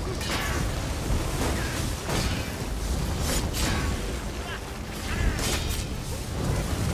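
Game spells crackle and zap in sharp electric bursts.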